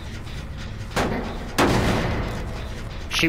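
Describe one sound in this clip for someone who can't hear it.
A machine clanks and rattles as it is struck.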